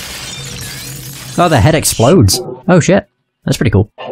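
A figure shatters like glass with a sharp crash.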